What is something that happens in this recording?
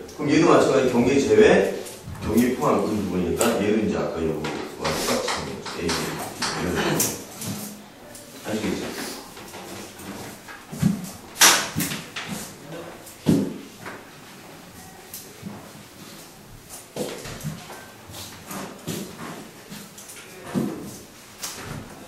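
A man lectures with animation.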